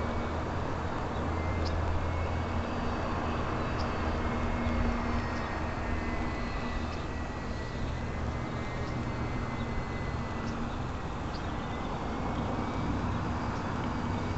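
Wind rumbles steadily against a microphone outdoors.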